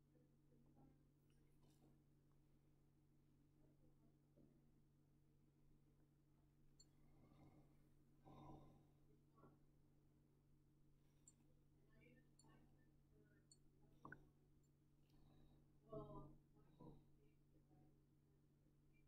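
Liquid swirls and sloshes softly in a glass flask.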